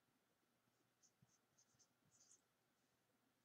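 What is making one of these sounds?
A marker squeaks faintly on paper.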